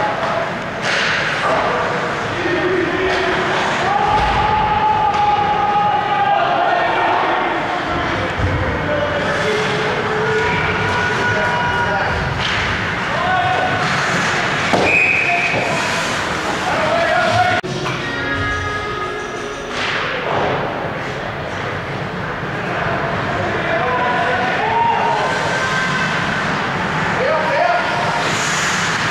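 Young players shout to each other from across the ice.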